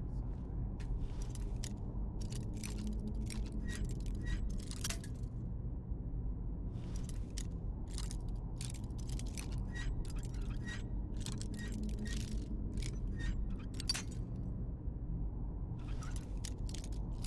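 A metal lockpick clicks and scrapes inside a lock.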